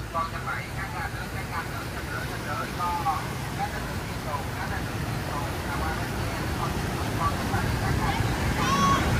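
Engines rumble as vehicles drive past.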